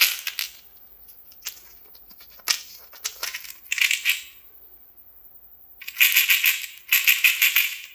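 Small hard candies rattle and click inside a small glass bottle.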